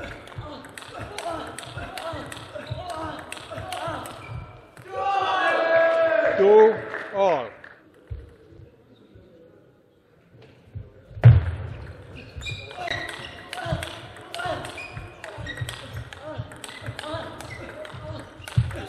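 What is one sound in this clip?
A table tennis ball clicks rapidly back and forth off paddles and the table.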